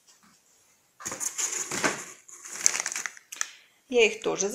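Paper and cardboard rustle as catalogues are shuffled in a box.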